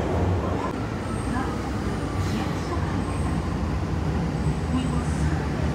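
Train brakes squeal softly as the train slows.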